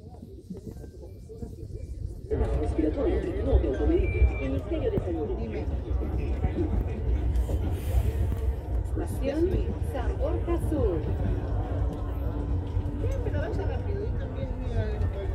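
A train rumbles steadily along the tracks, growing louder after a moment.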